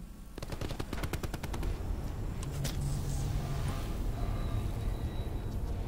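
A bandage crinkles as a medical kit is used.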